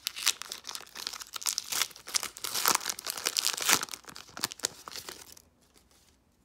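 A foil wrapper crinkles and tears as it is opened by hand.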